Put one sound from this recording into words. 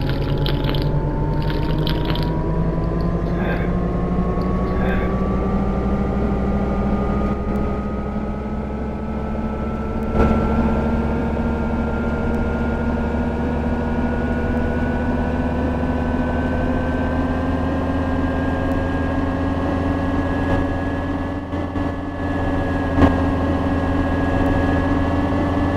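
A diesel city bus engine drones and rises in pitch as the bus accelerates, heard from inside.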